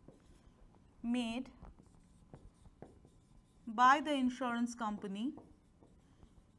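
A woman speaks calmly, nearby.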